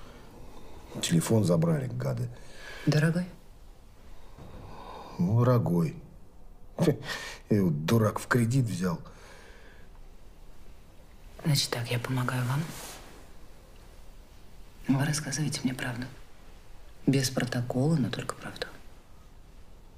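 A man asks questions in a low, calm voice nearby.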